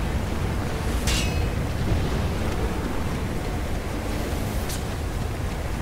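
A sword swishes and clangs sharply.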